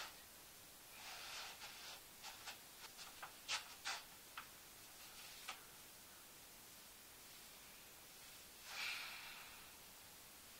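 Clothing rustles as a young woman moves.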